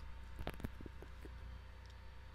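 Small metal parts click together.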